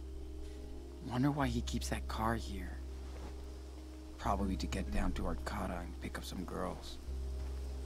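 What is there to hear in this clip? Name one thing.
A young man speaks quietly and calmly nearby.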